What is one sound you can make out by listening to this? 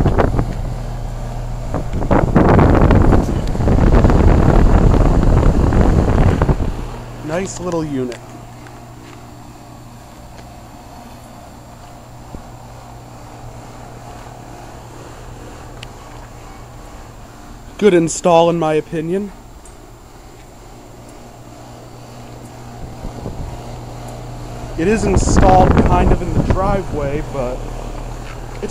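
An air conditioner unit hums steadily with its fan whirring.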